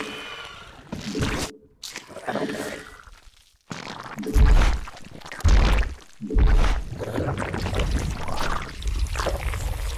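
Video game gunfire and explosions crackle and boom.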